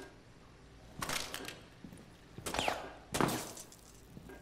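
Gunshots fire in short bursts.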